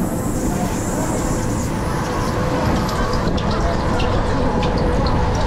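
Wind rushes past in loud gusts.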